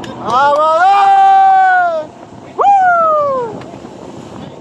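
A man shouts loudly with excitement close by.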